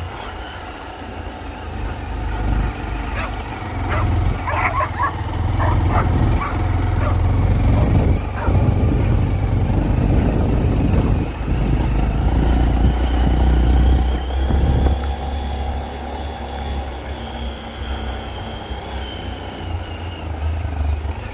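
A riding mower's engine drones steadily close by.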